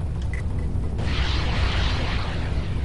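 Missiles launch with a loud hissing whoosh.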